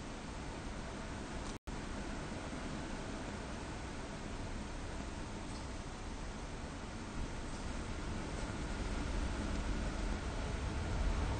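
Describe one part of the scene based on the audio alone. A train rumbles steadily along the tracks, heard from inside the cab, growing louder.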